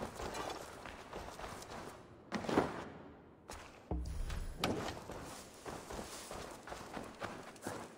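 Footsteps scuff across a stone floor.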